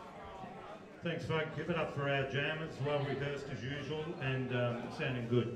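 An older man sings loudly into a microphone through a loudspeaker.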